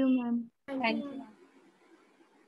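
A young woman speaks briefly through an online call.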